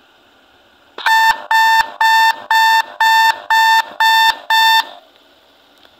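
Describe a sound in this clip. Electronic beeps sound in quick, even pulses.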